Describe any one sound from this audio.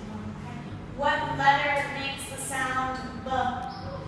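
A young boy speaks loudly nearby.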